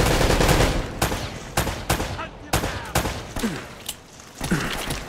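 Gunshots crack in quick bursts, ringing off stone walls.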